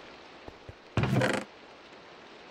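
A wooden chest creaks open in a video game.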